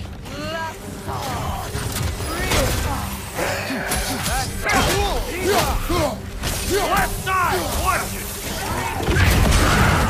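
Weapon blows strike and thud in quick succession.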